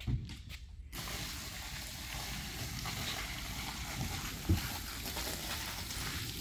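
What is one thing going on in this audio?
Water pours and splashes onto a rug.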